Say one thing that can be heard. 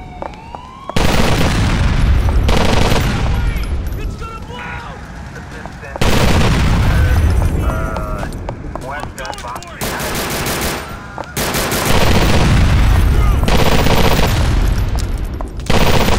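Explosions boom and roar loudly.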